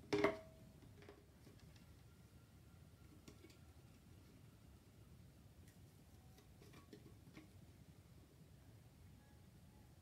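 Small objects rattle and tap against a cardboard tube.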